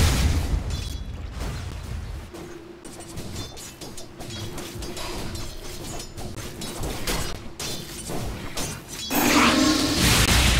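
Magic spells burst with sharp blasts.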